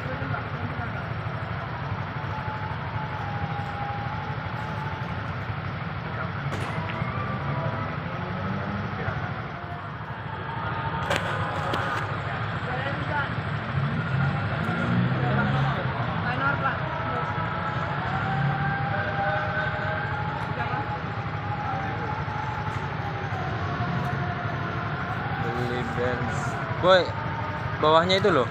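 Motorcycle engines idle nearby with a low, steady rumble.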